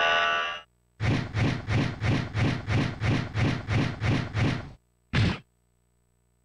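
A heavy machine rumbles and thuds in quick beats as it arrives.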